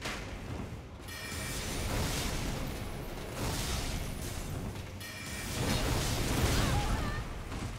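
Swords clash and slash with loud impacts.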